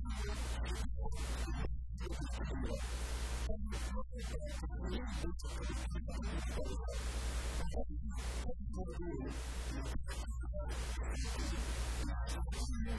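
A middle-aged man preaches passionately through a microphone and loudspeakers in an echoing room.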